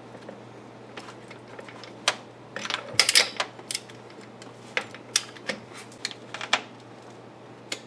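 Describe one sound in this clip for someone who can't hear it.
A ratchet wrench clicks as a bolt is turned.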